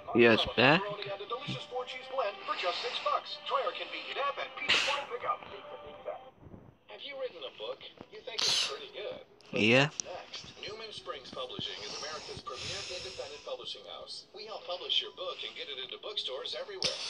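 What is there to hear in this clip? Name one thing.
A television plays an advert through its speaker.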